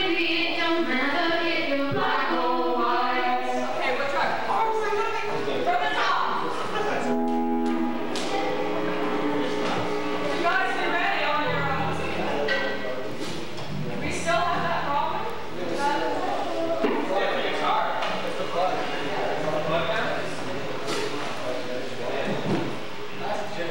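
A young girl sings into a microphone.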